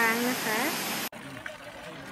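A small waterfall splashes and rushes steadily.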